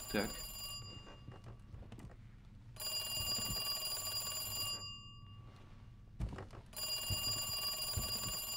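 An old telephone rings in bursts.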